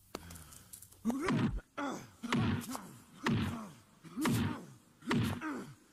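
A man grunts and cries out loudly in pain.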